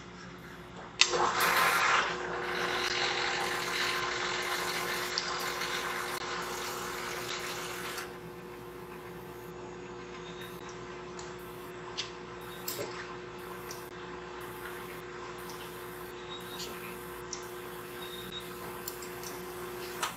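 A pump motor hums steadily.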